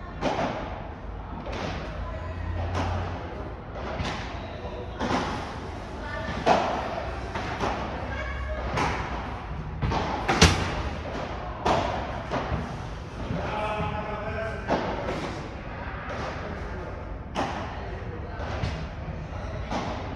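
Hard hits echo around a large indoor hall.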